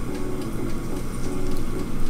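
Shrimp sizzle in a hot pan.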